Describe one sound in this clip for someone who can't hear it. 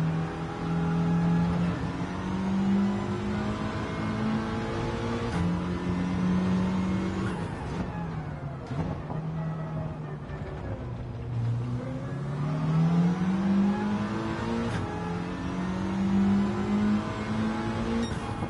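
A racing car engine roars, revving up through the gears, dropping low under braking and climbing again.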